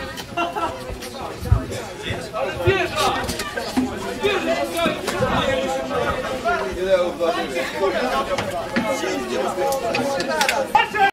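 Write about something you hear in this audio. A crowd of men shouts and chatters outdoors.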